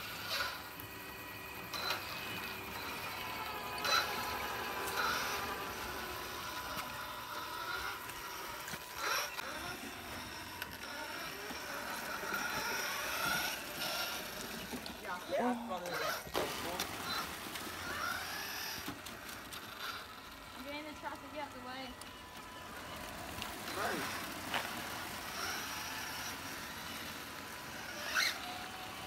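Small electric motors of toy trucks whine as the trucks roll along.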